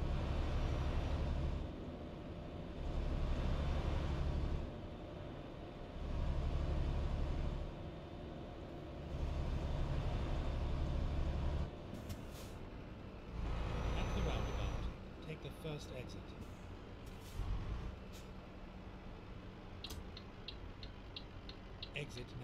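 A heavy truck engine rumbles, swelling and easing in bursts.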